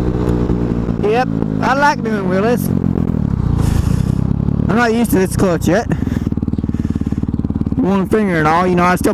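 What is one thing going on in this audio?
A motorcycle engine revs up and down sharply through gear changes.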